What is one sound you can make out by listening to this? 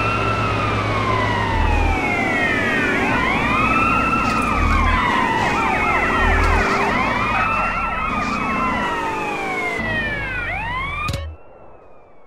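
A car engine roars at speed.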